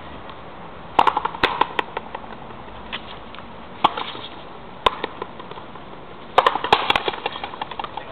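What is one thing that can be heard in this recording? A ball smacks sharply against a wall and a racket, echoing outdoors.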